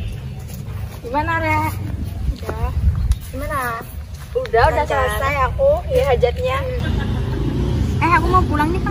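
Young women chat casually close by.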